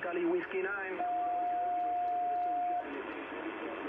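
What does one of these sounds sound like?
A radio gives a steady high beep.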